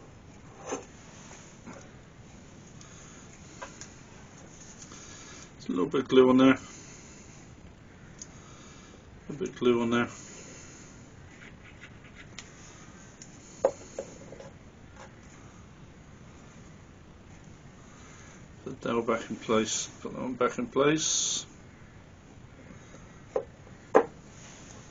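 A small wooden piece knocks lightly against another wooden piece.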